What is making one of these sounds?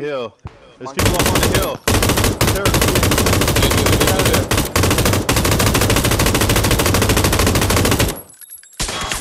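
A light machine gun fires long bursts.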